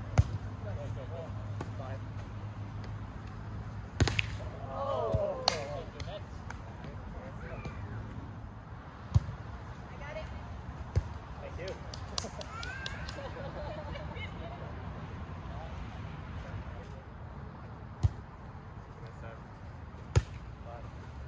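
A volleyball thumps off players' hands and arms now and then.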